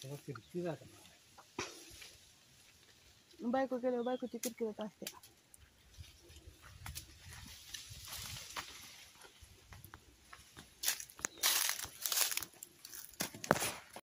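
Leaves rustle.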